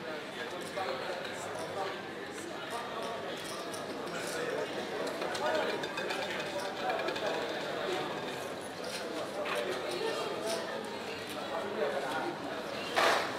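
Casino chips clack and click as they are stacked and moved.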